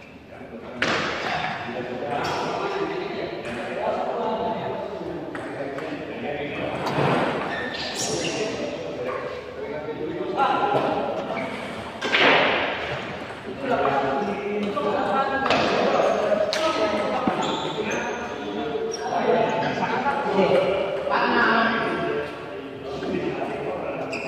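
A ping pong ball clicks back and forth on paddles and a table.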